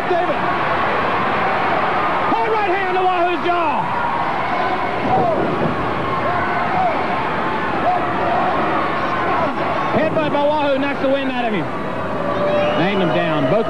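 A large crowd roars and cheers throughout.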